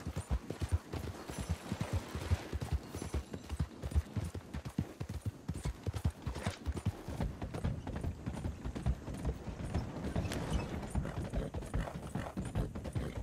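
A horse's hooves gallop in a quick, steady beat.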